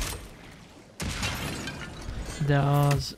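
A fiery explosion bursts with a roar.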